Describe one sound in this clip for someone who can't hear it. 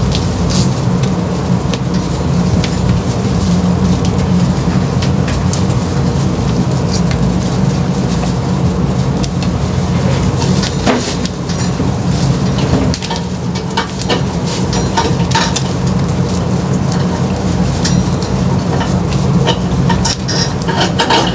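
Wires rustle and click close by.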